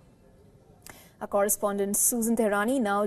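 A young woman speaks clearly, like a news presenter.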